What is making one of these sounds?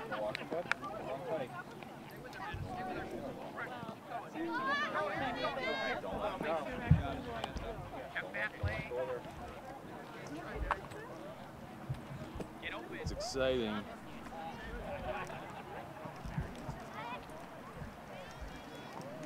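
Young players and adults shout and call out across an open field.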